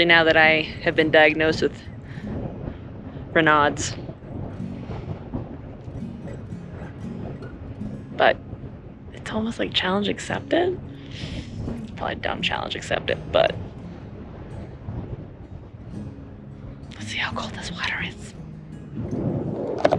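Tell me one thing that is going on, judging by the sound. A young woman talks and laughs close to a microphone, with animation.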